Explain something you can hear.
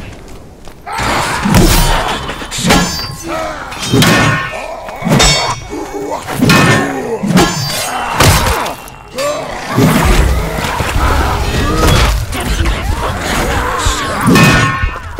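Heavy weapon blows strike and thud repeatedly.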